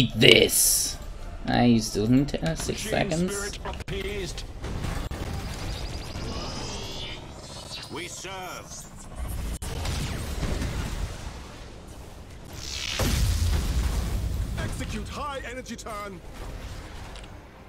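Laser weapons fire with electronic zaps.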